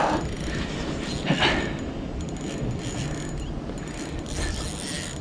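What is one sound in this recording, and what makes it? Wind blows outdoors, rumbling against the microphone.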